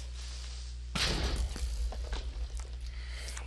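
An explosion booms with a loud, rumbling blast.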